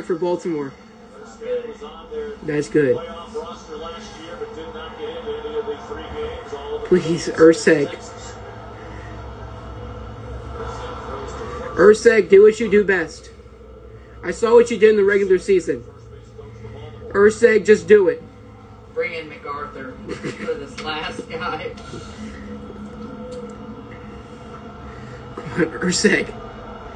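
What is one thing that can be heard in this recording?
A sports broadcast plays from a television loudspeaker.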